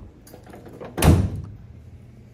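A truck's tailgate slams shut with a loud thud.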